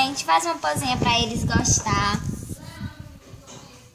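A young woman talks loudly and excitedly, close up.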